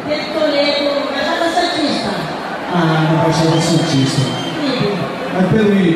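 An elderly woman sings through a microphone over loudspeakers.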